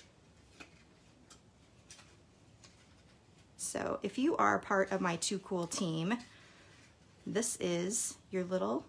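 Stiff paper rustles and creases as it is folded by hand.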